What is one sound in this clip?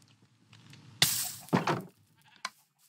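A wooden barrel thumps shut.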